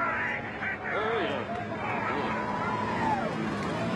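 A man shouts through a microphone.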